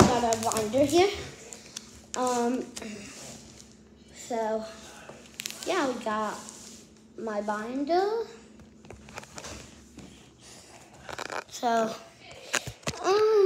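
A young boy talks animatedly close to the microphone, his voice rising and falling in pitch.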